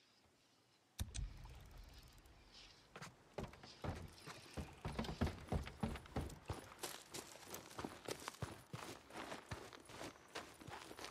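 Footsteps thud on wooden boards and then crunch on a dirt path at a quick run.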